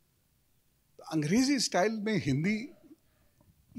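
A middle-aged man speaks into a microphone in a warm, sing-song voice.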